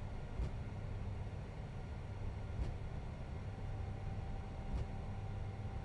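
Tyres thump over joints in the taxiway.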